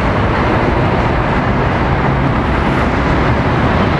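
Car tyres hiss on the road.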